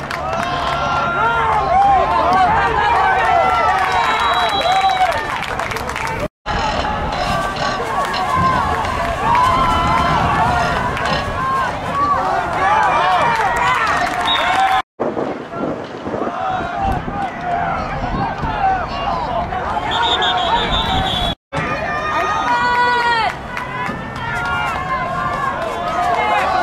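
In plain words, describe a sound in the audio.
A crowd of young people shouts and cheers nearby outdoors.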